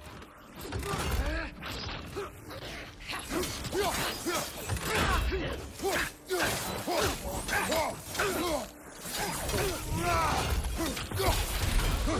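Blows and impacts ring out in a fight.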